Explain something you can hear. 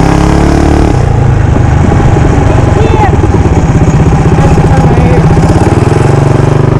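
A single-cylinder four-stroke mini bike engine putters off throttle while coasting.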